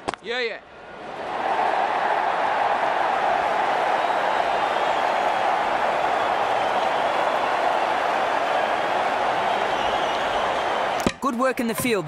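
A large crowd cheers and roars loudly in a stadium.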